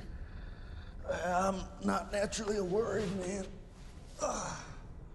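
Another man answers close by in a strained voice.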